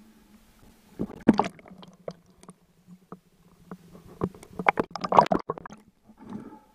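Air bubbles gurgle underwater.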